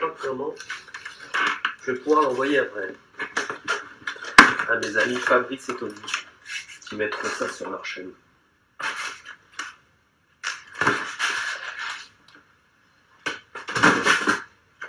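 Cardboard rustles and scrapes as it is handled.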